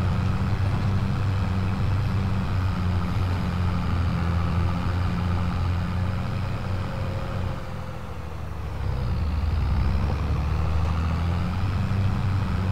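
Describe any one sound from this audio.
A tractor engine rumbles steadily from inside the cab, dipping briefly and then picking up again.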